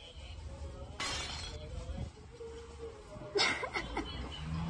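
A pane of glass falls and shatters on a hard floor.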